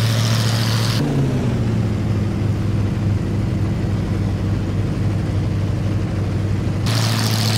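A propeller plane engine hums, muffled, from inside the cockpit.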